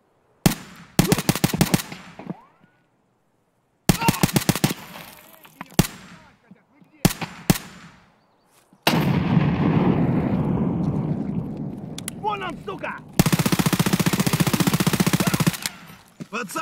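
Gunfire rattles in sharp bursts.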